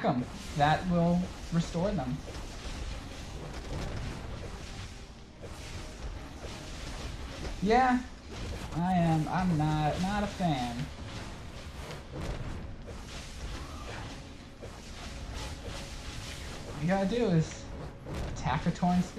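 A young man speaks casually into a close microphone.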